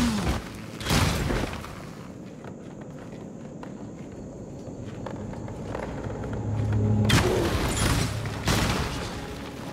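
Fire roars and whooshes.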